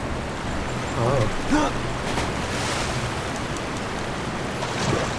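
Water splashes loudly as someone jumps in.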